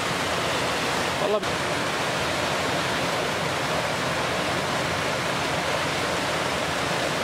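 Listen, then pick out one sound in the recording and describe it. A waterfall splashes and rushes steadily over rocks.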